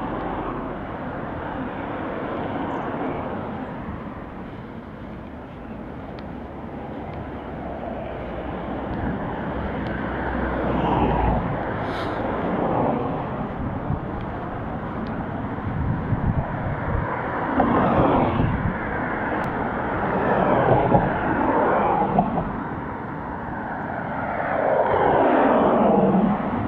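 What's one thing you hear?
Wind rushes steadily past, outdoors.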